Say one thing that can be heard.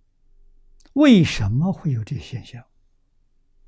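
An elderly man speaks with animation into a close microphone.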